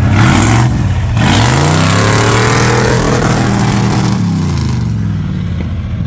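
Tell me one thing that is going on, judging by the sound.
Tyres crunch and spin on loose dirt.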